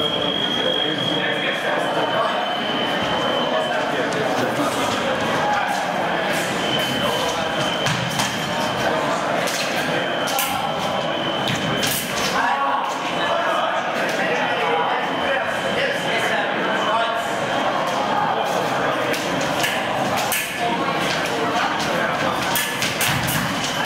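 Fencers' shoes squeak and thud on the floor.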